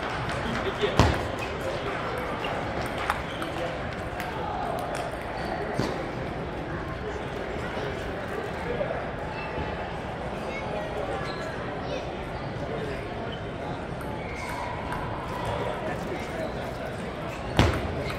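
A ping pong ball clicks sharply on paddles and a table.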